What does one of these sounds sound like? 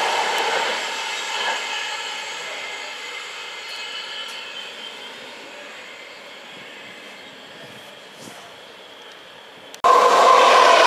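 A train pulls away and fades into the distance.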